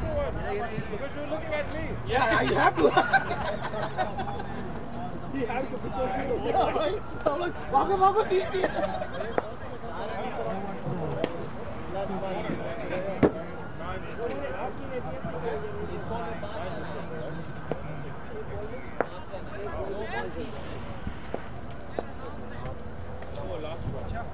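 Men talk and call out outdoors at a distance.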